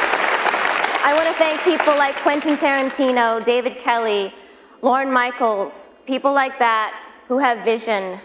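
A young woman speaks calmly into a microphone over a loudspeaker in a large hall.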